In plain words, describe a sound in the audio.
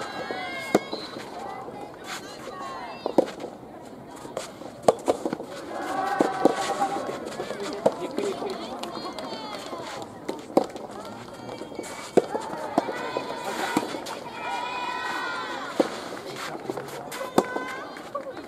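Rackets strike a soft tennis ball back and forth with sharp pops.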